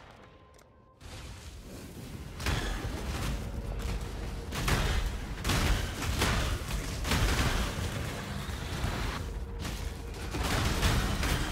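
Magic blasts and explosions crackle and boom rapidly.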